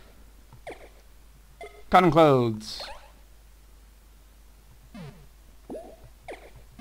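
Short electronic menu blips chirp now and then.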